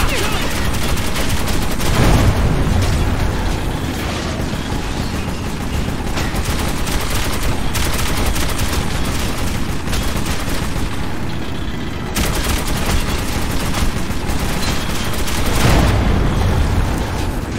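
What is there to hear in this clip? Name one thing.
A machine gun fires loud bursts that echo.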